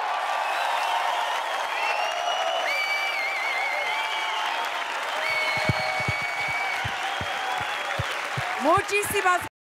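A large crowd claps and cheers loudly.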